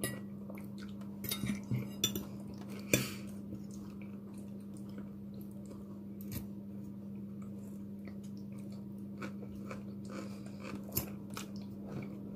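Forks clink against a plate.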